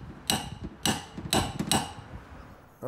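A metal tool taps sharply on a car body.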